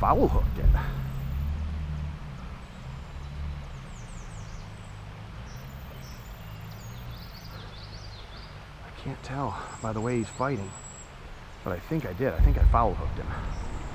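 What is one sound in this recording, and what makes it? Shallow river water ripples and laps gently close by.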